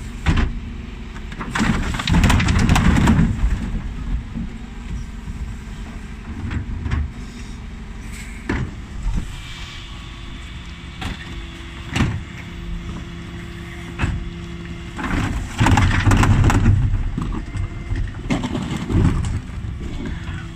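A bin lift mechanism whirs and clanks as it tips bins.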